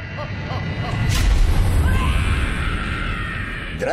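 A huge explosion booms and rumbles deeply.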